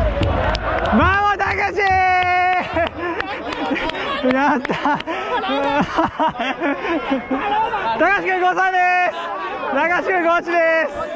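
Young men shout and cheer close by.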